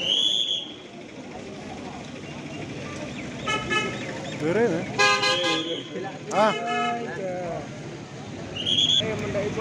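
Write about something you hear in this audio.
Cars drive slowly past on a busy street.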